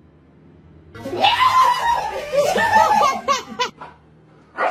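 A woman screams loudly in fright, close by.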